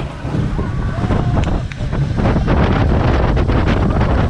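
Riders scream and shout as the coaster drops.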